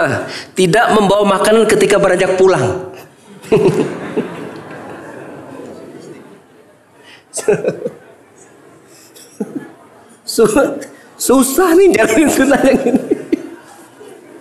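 A man laughs heartily into a microphone.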